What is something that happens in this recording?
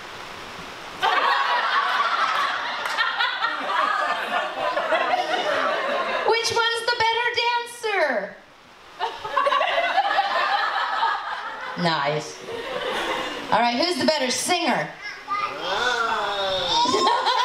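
Guests laugh and cheer loudly.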